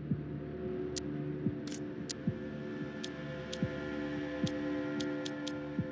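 Menu clicks tick sharply, one after another.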